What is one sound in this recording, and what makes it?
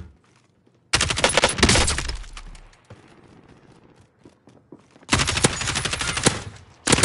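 An automatic rifle fires in loud rapid bursts.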